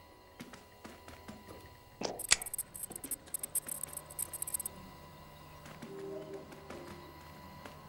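A cat's paws patter softly across the floor.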